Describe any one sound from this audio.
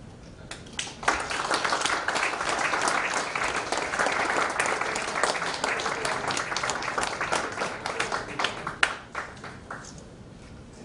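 A crowd applauds.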